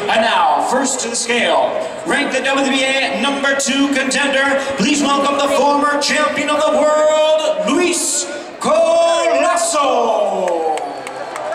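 A middle-aged man announces loudly and with animation through a microphone and loudspeakers, echoing in a large hall.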